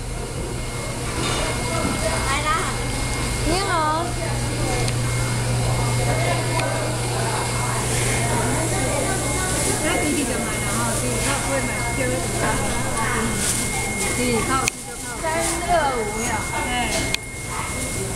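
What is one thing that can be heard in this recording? Many people chatter nearby.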